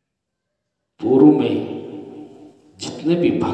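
A middle-aged man speaks calmly into a microphone, close and clear.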